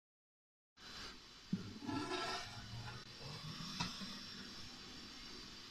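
A metal lid scrapes and clinks against a cooking pot.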